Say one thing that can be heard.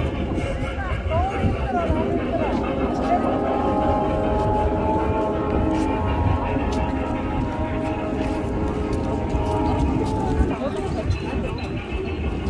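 A woman talks nearby in a lively voice.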